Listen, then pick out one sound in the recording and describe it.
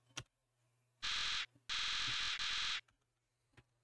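Rapid high electronic blips chatter as game text types out.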